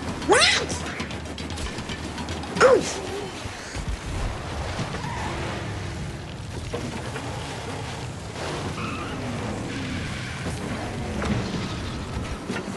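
A kart engine whines steadily as it races.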